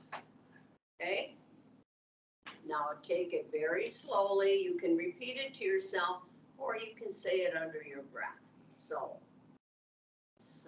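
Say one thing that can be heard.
An older woman speaks calmly and slowly through an online call.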